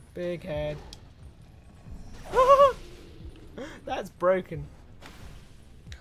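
A sword swishes and strikes a monster.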